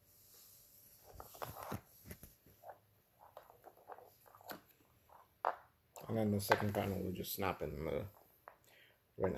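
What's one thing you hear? Plastic cable connectors click and rattle as they are handled.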